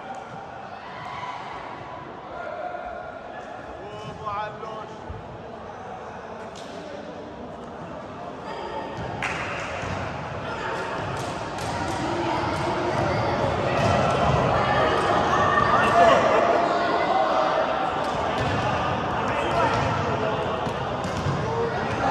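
Young men chatter and call out in a large echoing hall.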